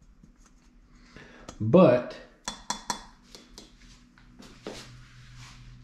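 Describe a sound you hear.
Metal parts clack and knock as a hand handles them.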